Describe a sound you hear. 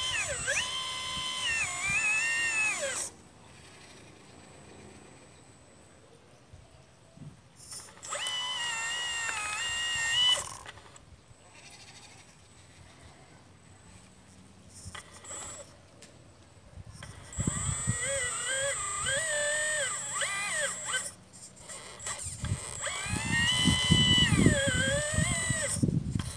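A small electric motor whines in short bursts, rising and falling in pitch.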